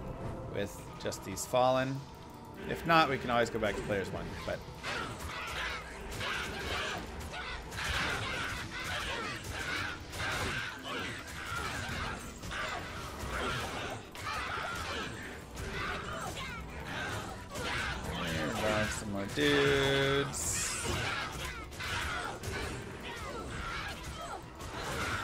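Spells crackle and burst in a video game.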